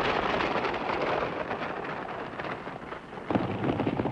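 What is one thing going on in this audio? Horses' hooves pound along at a gallop.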